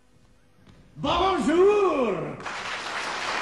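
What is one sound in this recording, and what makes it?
A man calls out loudly in a ringing voice.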